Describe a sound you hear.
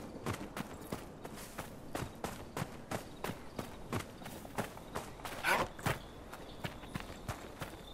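Armoured footsteps thud quickly and steadily on hard ground.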